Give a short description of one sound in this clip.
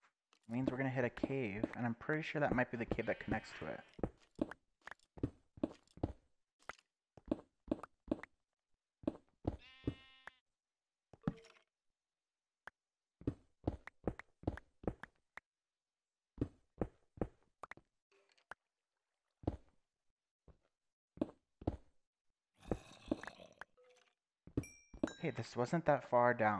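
A pickaxe chips at stone blocks with quick, repeated knocks.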